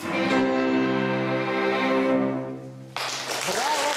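A violin, cello and piano trio plays a long held final chord in an echoing hall.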